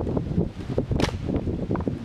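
A stick knocks against a log on the ground.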